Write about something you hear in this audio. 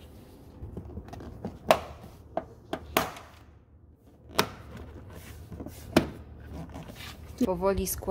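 Plastic trim clicks and snaps into place.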